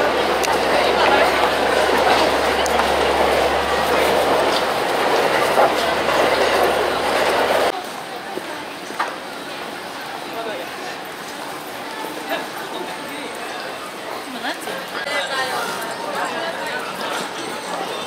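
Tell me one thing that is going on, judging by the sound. A busy crowd chatters and murmurs all around.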